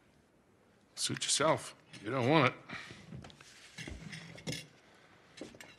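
A man speaks calmly in reply.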